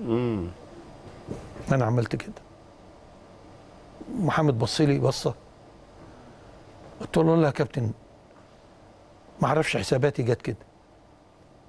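An elderly man speaks slowly and calmly into a microphone, in short bursts with pauses.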